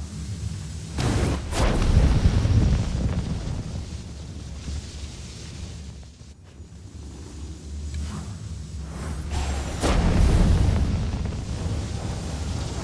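A burst of flame whooshes and roars loudly.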